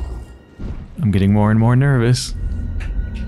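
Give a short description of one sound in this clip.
A shimmering magical tone swells and wavers.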